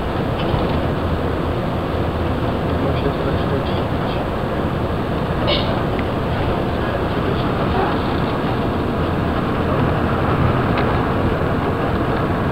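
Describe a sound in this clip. A vehicle rumbles steadily as it travels along.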